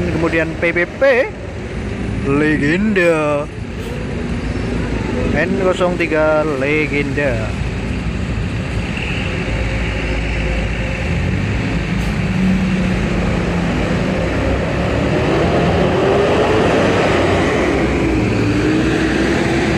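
A diesel coach rolls slowly past nearby.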